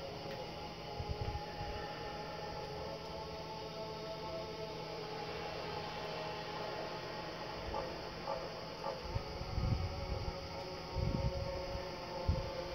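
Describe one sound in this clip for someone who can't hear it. Low thuds and footsteps sound from a television speaker.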